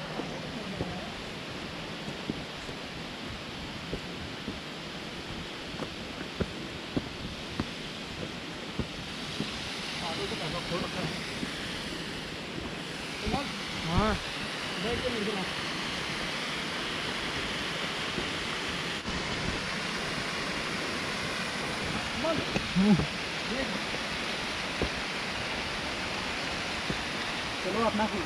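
Footsteps crunch and scrape on loose rocks.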